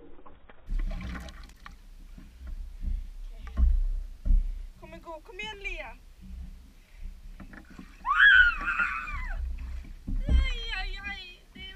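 Water splashes and drips.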